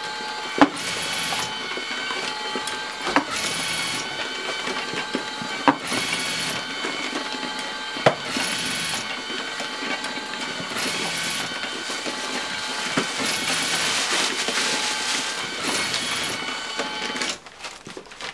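Envelopes slap and rattle along a conveyor belt.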